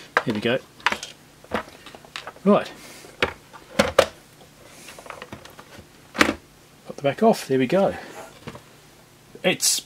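A plastic casing knocks and rattles as hands turn it over.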